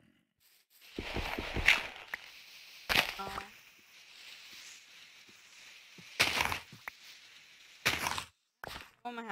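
Dirt blocks crunch as they are dug and placed.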